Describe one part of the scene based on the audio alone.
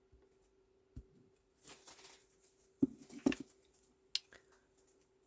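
A plastic stamp block knocks lightly on a tabletop.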